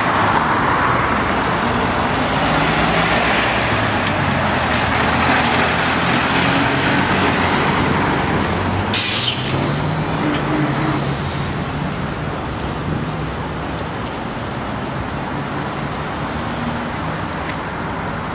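Traffic rumbles steadily on a nearby road outdoors.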